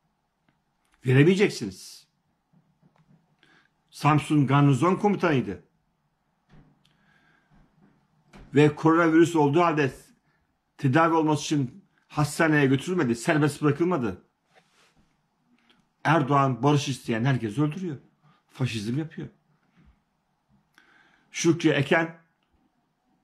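A middle-aged man speaks calmly in short phrases, close to the microphone.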